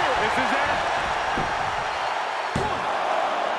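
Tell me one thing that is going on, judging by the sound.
A referee slaps the mat during a pin count.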